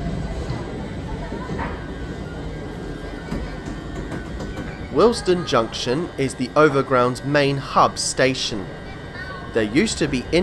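A train hums steadily at a platform.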